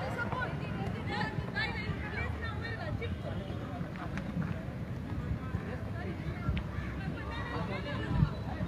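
A crowd of spectators shouts and chatters outdoors at a distance.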